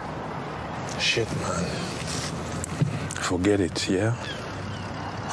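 Another man answers in a low, quiet voice nearby.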